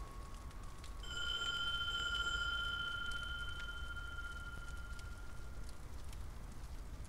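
A bell rings with a clear, ringing tone that slowly fades.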